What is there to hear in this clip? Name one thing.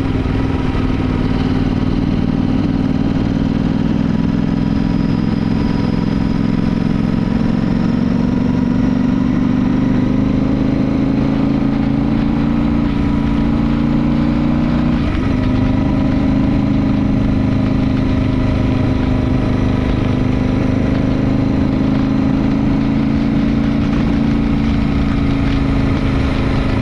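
Tyres hiss on wet asphalt.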